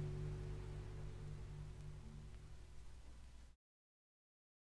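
Music plays from a spinning record, fading away and then stopping.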